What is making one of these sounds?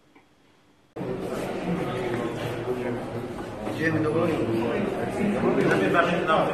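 A crowd of people chatters loudly in an echoing hall.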